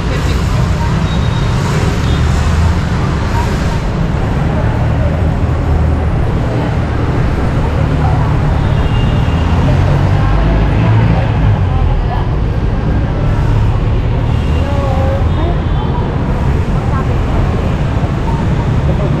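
Busy street traffic rumbles steadily outdoors.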